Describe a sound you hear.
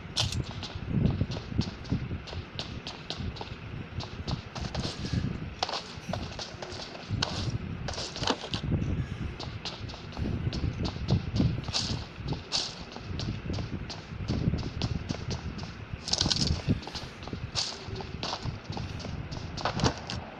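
Footsteps thud quickly and steadily as a game character runs.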